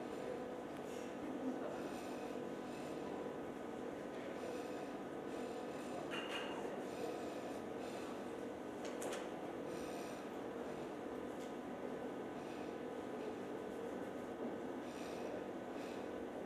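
A man chants in a steady, droning voice in an echoing hall.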